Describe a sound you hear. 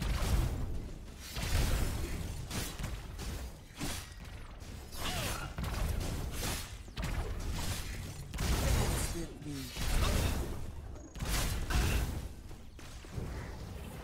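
Game spell blasts and explosions boom and crackle in quick bursts.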